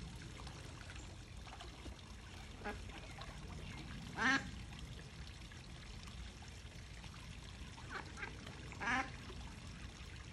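A duck splashes as it dabbles in the water.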